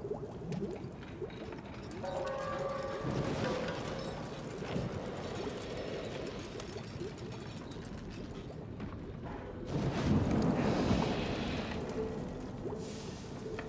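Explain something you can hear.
Soft footsteps shuffle slowly on a stone floor.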